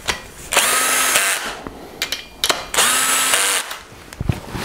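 A cordless drill whirs in two short bursts.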